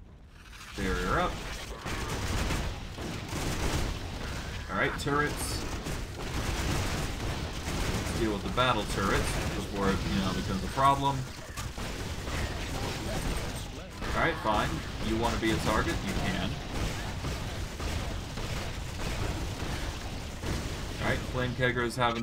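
Magic blasts and explosions crackle and boom during a fight.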